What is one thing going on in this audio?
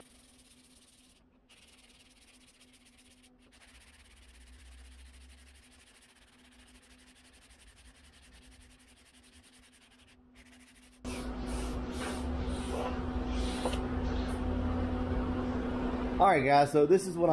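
A sanding block rubs back and forth on a panel.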